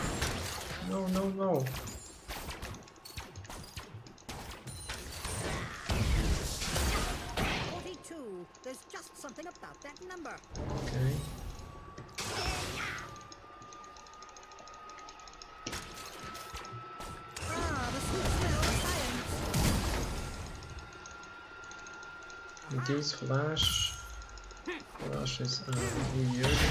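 Game spell effects whoosh and crack in quick bursts.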